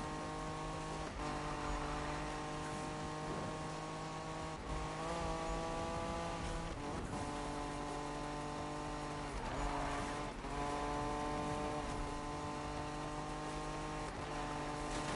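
A car engine roars at high revs, dropping briefly with each gear change.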